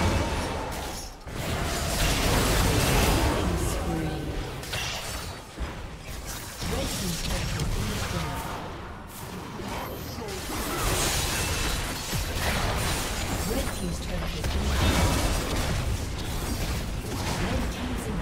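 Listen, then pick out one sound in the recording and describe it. Spell effects whoosh and crackle in a fast game battle.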